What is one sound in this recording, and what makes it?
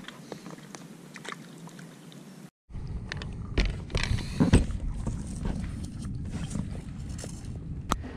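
A paddle splashes and dips in the water.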